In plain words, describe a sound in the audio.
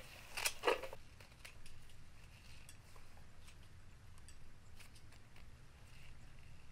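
Leaves rustle and crackle as hands strip them from stalks.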